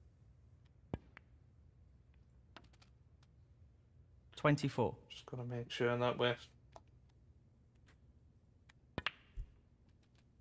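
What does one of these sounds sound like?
Snooker balls knock against each other.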